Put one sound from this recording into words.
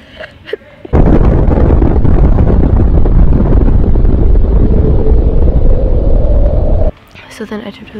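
A huge explosion roars with a deep, steady rumble.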